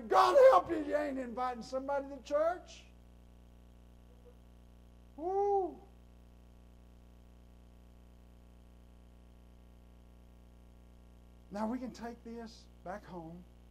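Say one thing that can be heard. A middle-aged man speaks calmly into a microphone in an echoing room, pausing between phrases.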